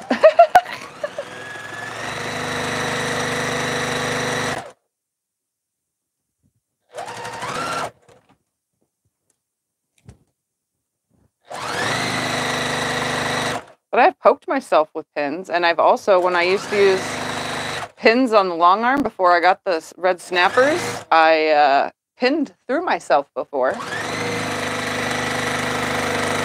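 A straight-stitch sewing machine runs in bursts, stitching through fabric.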